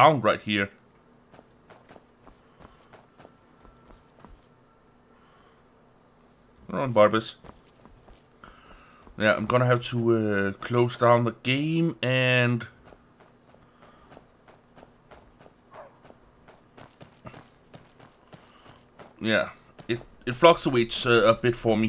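Footsteps crunch softly on stony ground.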